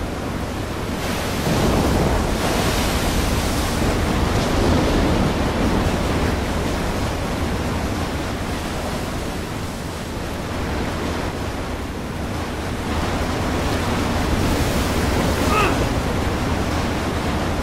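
Water splashes and crashes loudly.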